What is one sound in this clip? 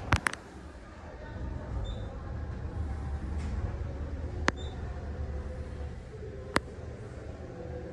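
A low steady hum fills a large echoing hall.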